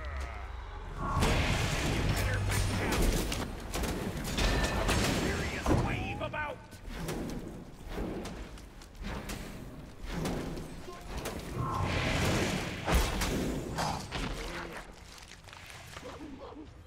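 Blades clash and spells burst in a fast, noisy fight.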